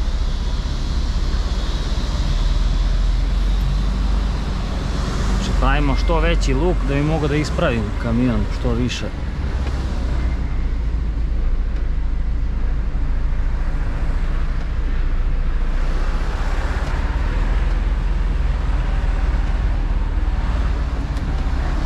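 A truck's diesel engine rumbles low and steady from inside the cab.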